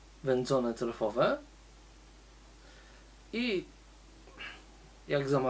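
A man talks calmly and close by, in short bursts.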